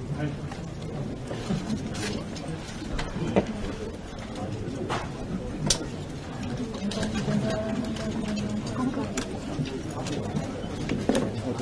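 A crowd of people murmurs quietly in a room.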